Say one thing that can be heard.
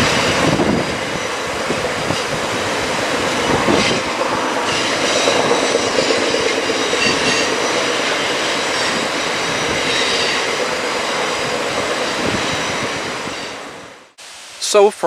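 A passenger train rumbles away along the rails and fades into the distance.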